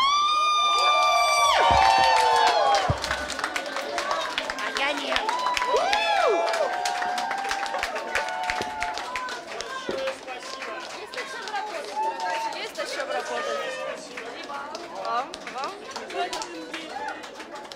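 A crowd of women cheers and shouts loudly in an echoing room.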